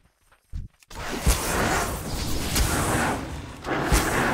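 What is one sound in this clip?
Weapons strike and clash in a fight.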